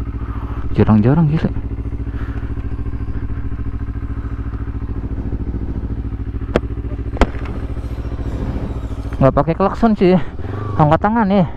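A motorcycle engine idles with a low steady rumble.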